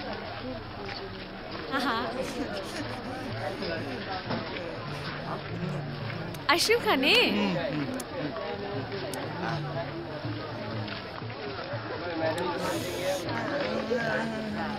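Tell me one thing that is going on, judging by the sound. A young woman talks and laughs softly nearby.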